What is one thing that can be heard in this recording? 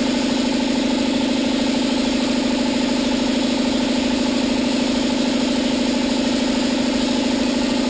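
A spray gun hisses steadily.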